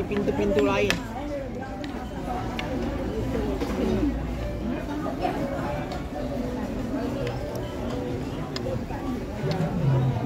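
Several people chat close by.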